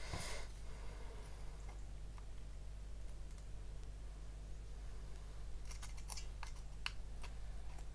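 A metal file scrapes lightly against a small part.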